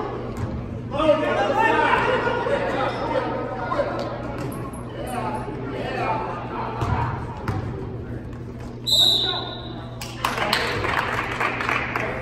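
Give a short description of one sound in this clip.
A man near the court shouts to the players.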